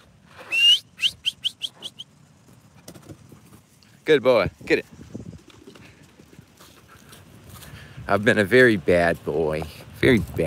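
A dog runs across dry grass.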